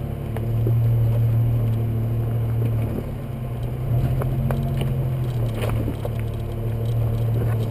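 A vehicle engine hums low and steady while driving slowly.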